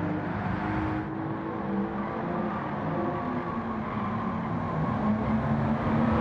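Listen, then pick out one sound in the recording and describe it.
A sports car engine hums steadily as the car drives past.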